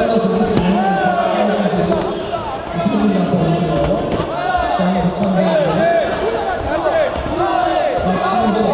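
Shoes squeak sharply on a canvas floor.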